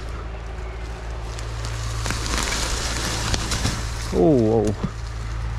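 Bicycle tyres crunch over dry leaves and dirt.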